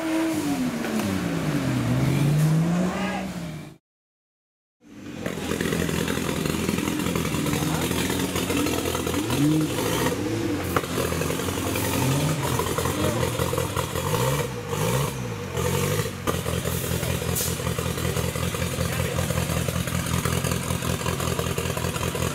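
An off-road vehicle's engine revs up and down loudly as it climbs.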